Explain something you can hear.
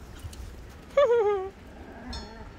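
A puppy whines with a short falling cry.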